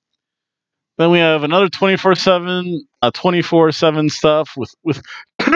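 A man speaks with animation into a headset microphone, close up.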